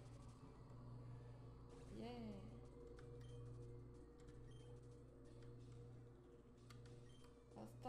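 Chiptune battle music plays from a handheld video game.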